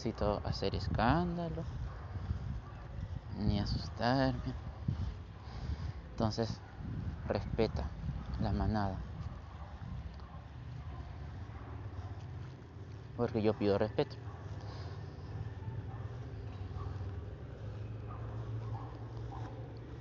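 A small dog scampers and sniffs through short grass.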